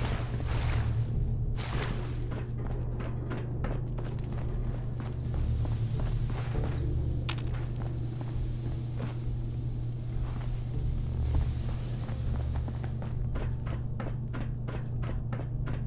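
Footsteps thud on a hard floor at a walking pace.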